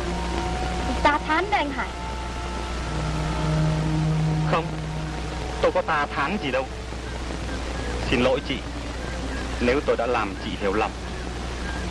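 A young woman speaks softly and with emotion, close by.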